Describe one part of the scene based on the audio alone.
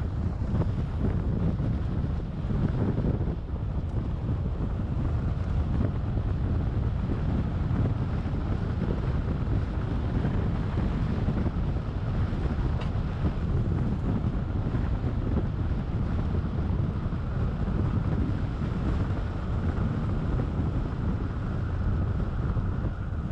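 A car engine hums at a low, steady pitch.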